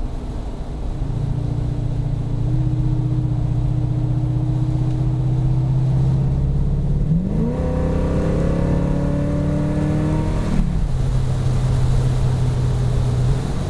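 A car engine hums steadily while driving, with its pitch rising and then dropping.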